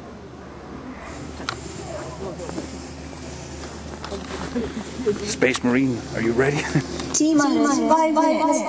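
A crowd of people chatter outdoors at night.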